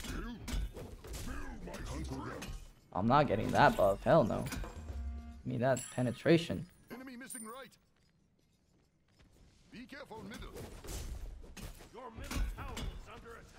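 Weapons clash and magic blasts burst in a fast fight.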